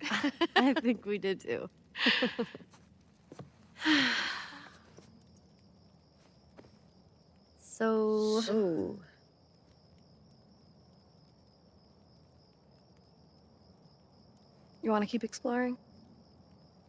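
A teenage girl answers softly, close by.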